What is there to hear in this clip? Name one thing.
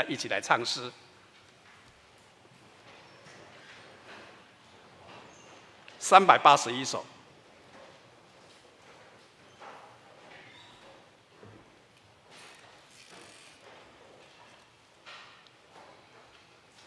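An elderly man speaks calmly through a microphone, in short loud bursts with long quiet pauses.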